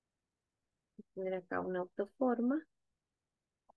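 A woman speaks briefly and calmly, close to a microphone.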